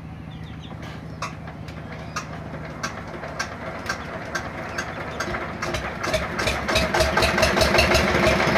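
A woodworking machine clatters rapidly as wood is fed in, growing louder.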